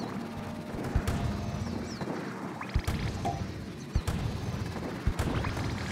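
A game's paint gun fires with sharp, splattering thumps.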